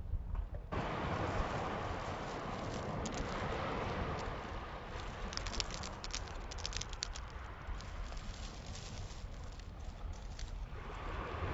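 Small pebbles clatter and click as a hand scoops and drops them.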